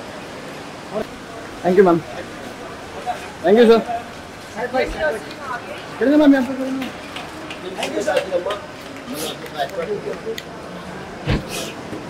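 Several men call out and talk excitedly nearby.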